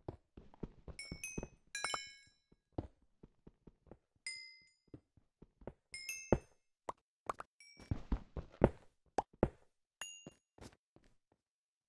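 Stone blocks break with a crunch.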